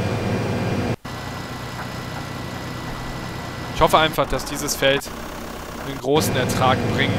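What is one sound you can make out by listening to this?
A tractor's diesel engine drones.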